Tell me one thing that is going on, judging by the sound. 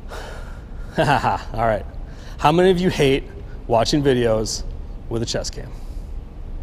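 A man speaks calmly in a large echoing hall.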